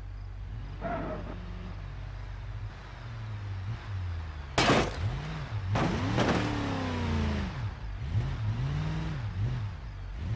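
A truck engine hums and revs as it drives up.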